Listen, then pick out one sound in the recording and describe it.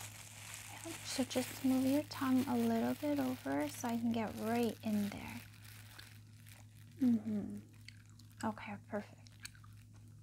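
A woman speaks softly and close to a microphone.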